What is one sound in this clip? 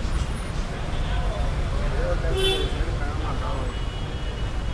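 People chatter nearby on the street.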